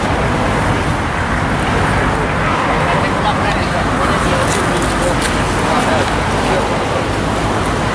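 A group of men and women talk quietly at a distance outdoors.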